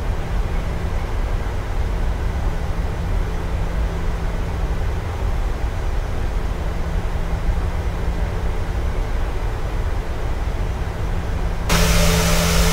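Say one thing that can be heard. Jet engines rumble low and muffled from inside a cockpit.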